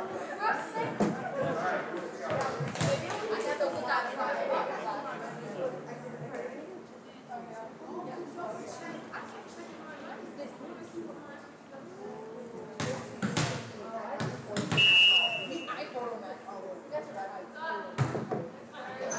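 A volleyball is struck with sharp smacks in a large echoing gym.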